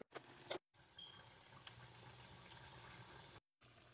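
A stove knob clicks as it turns.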